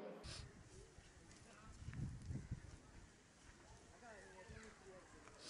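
Dry leaves rustle as hands spread them over the ground.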